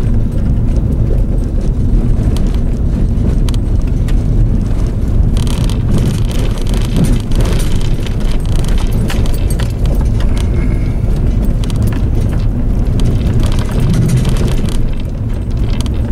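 Small stones click against the underside of a car.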